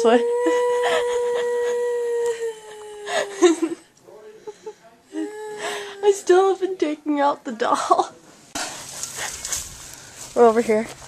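A young person talks and laughs with animation close by.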